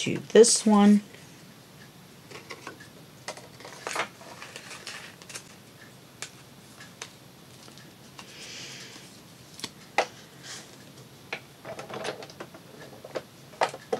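Stiff sheets of card and plastic rustle and tap as they are handled.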